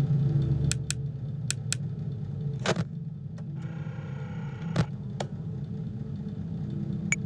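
Clicks sound as buttons are pressed.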